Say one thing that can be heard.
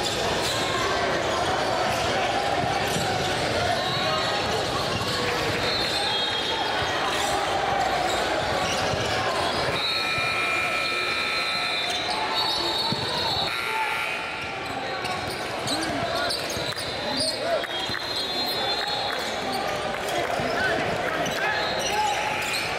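A large crowd chatters and cheers in an echoing gym.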